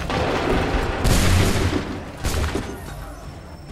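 A volley of muskets fires in loud cracking bursts.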